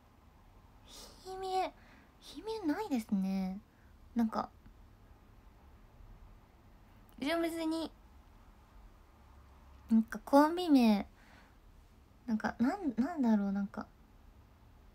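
A young woman speaks softly and casually in short bursts, close to a microphone.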